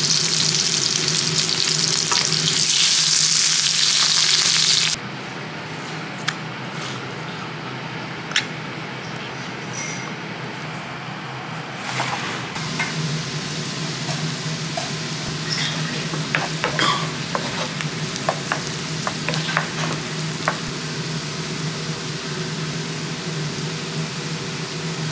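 Onions sizzle loudly in hot oil.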